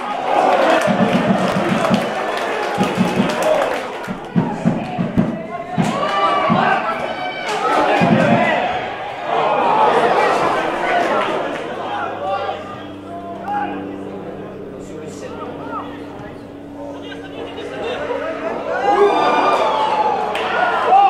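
Players shout and call out to each other across an open outdoor pitch.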